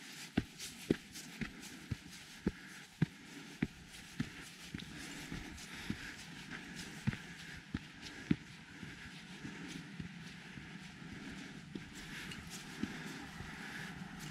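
Footsteps crunch on a dirt trail at a steady pace.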